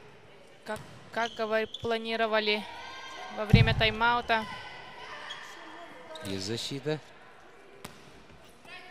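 A volleyball is struck with sharp slaps in a large echoing hall.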